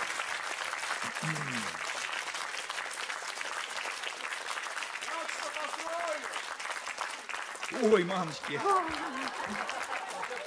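An elderly man speaks and laughs through a microphone.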